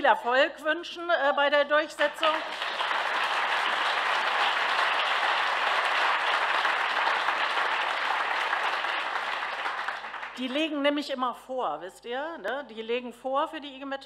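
A middle-aged woman speaks warmly into a microphone.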